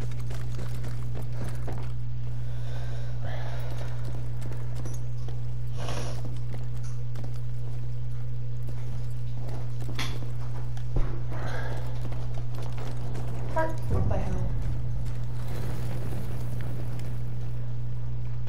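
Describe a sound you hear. Footsteps thud on wooden floor and ground.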